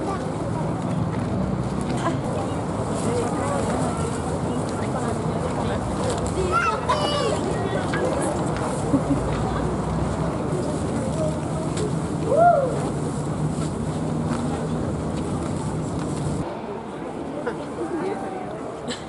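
A crowd of children and adults chatters close by outdoors.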